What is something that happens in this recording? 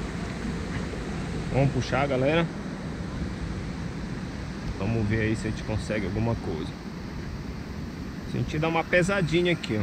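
A kayak paddle dips and splashes in calm lake water.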